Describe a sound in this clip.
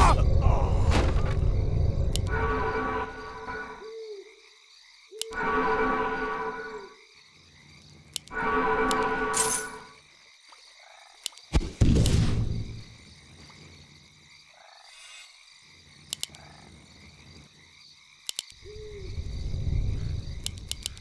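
Computer game sound effects play in short bursts.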